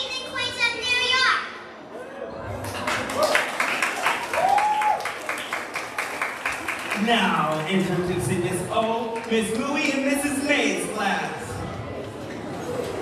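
A group of children sings together in a large hall.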